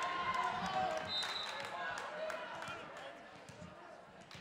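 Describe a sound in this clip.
A volleyball bounces on a wooden floor in an echoing gym.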